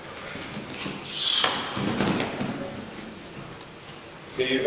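Bodies thump and scuff on a padded mat.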